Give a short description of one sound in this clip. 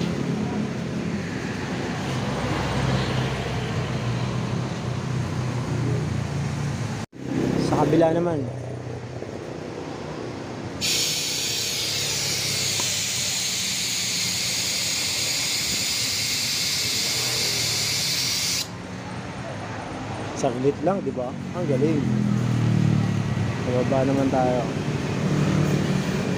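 A scooter engine idles with a steady low hum.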